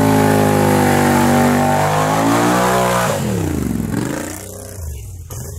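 An ATV engine revs hard, then drops back.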